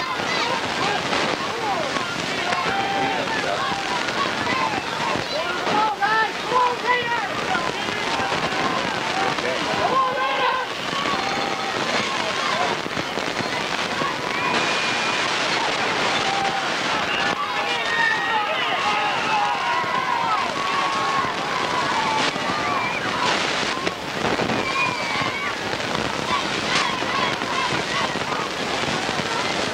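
A crowd of young men shouts and chatters close by outdoors.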